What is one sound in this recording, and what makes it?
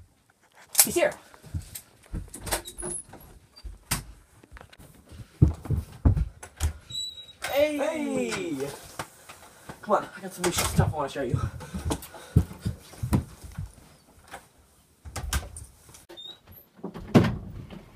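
Footsteps thud quickly across a floor.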